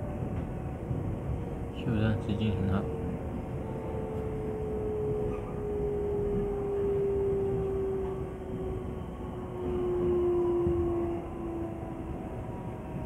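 Train wheels squeal with a long, slowly falling whine.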